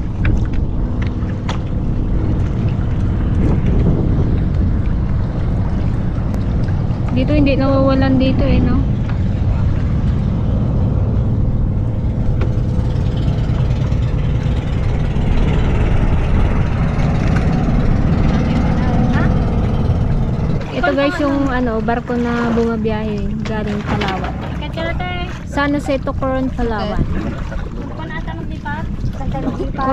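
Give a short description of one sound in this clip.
Wind blows strongly across open water.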